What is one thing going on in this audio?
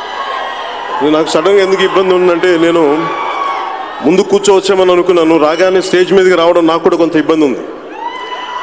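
A man speaks with animation into a microphone, heard over loudspeakers in a large echoing hall.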